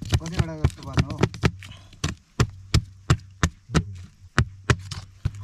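A machete chops repeatedly into a wooden stalk on a block.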